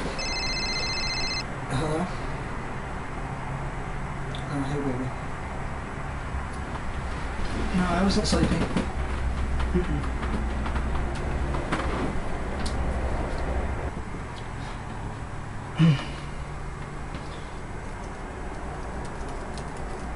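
A young man talks on a phone nearby, casually.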